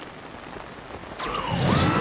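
A glider cloth snaps open and flutters.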